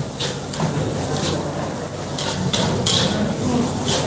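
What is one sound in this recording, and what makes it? A metal spatula scrapes and clinks in a wok.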